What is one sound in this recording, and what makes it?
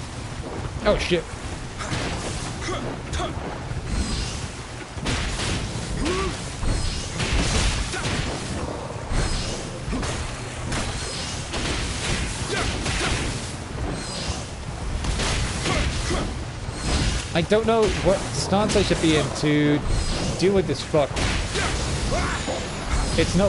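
A beast growls and roars.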